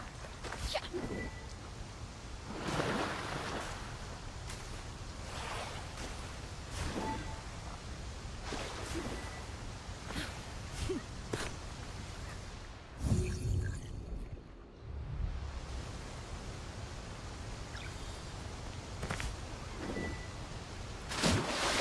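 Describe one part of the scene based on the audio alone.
Footsteps scuff over rock and gravel.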